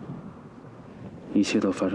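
A young man speaks briefly and softly, close by.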